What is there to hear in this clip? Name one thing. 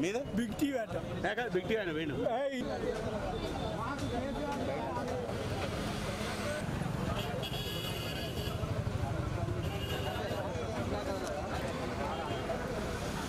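A crowd of men and women murmurs and chatters outdoors.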